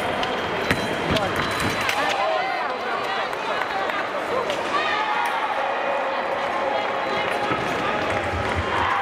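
Shoes squeak on the floor as fencers move.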